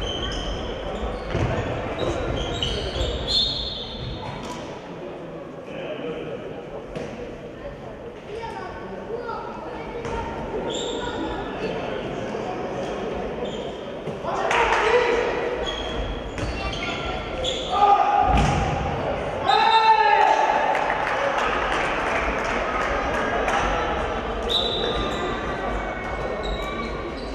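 A handball bounces and thuds on the floor.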